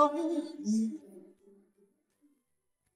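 A man sings sadly in a high, nasal voice, then falls silent.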